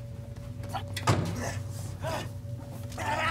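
Fists thud against punching pads.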